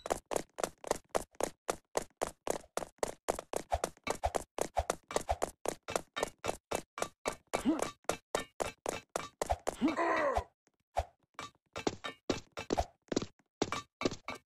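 Quick footsteps thud in a steady running rhythm.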